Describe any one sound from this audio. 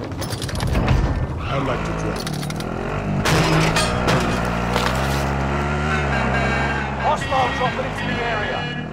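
A vehicle engine rumbles and revs as it drives.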